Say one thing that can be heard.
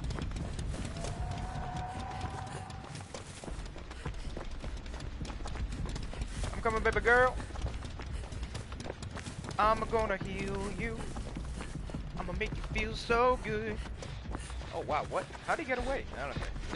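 Footsteps run quickly through grass.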